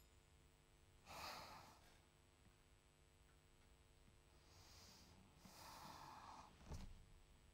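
A man snores loudly while asleep close by.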